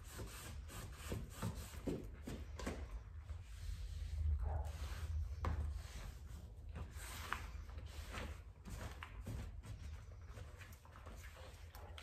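A cloth rubs and swishes across a tiled floor.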